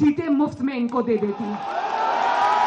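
A young woman speaks forcefully into a microphone over loudspeakers.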